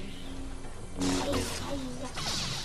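A laser sword crashes through a wooden wall.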